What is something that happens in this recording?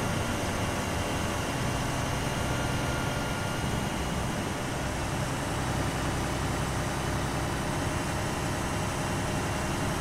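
Tyres rumble on asphalt.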